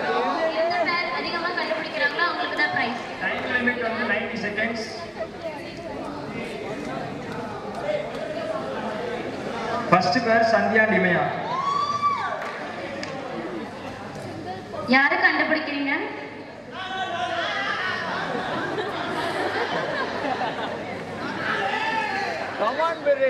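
A young man talks with animation through a microphone and loudspeaker in a large hall.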